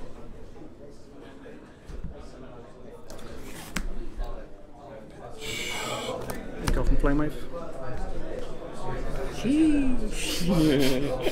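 Playing cards slide and tap on a mat.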